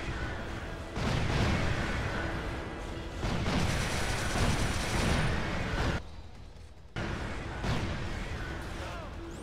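A heavy gun fires rapid, booming bursts.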